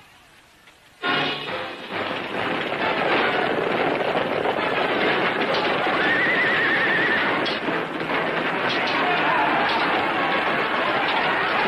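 Horses gallop and chariots rumble over the ground.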